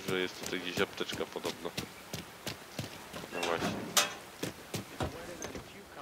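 Footsteps tap on hard ground.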